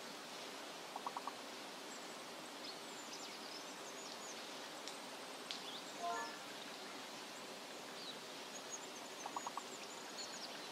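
A short electronic chime sounds as letters shuffle in a word game.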